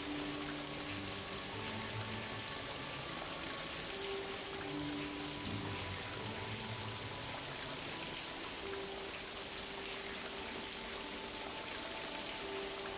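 Game music plays steadily with low tones.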